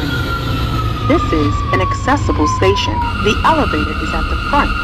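Train wheels squeal against the rails while braking.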